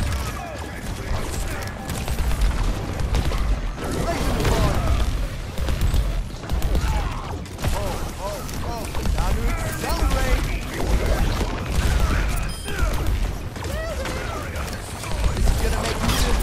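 Explosions boom with deep thuds.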